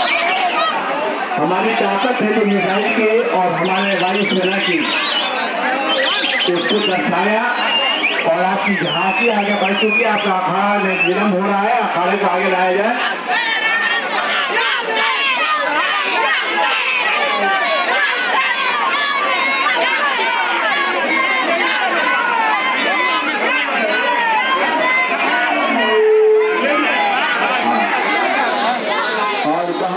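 A large crowd of young men shouts and chants loudly outdoors.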